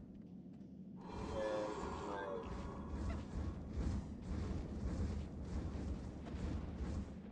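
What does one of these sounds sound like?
A magic beam hisses and crackles.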